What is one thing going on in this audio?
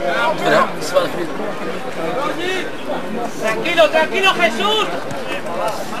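A group of spectators chatter close by, outdoors.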